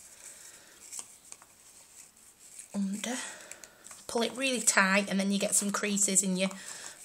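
Paper and twine rustle softly as hands tie a bundle.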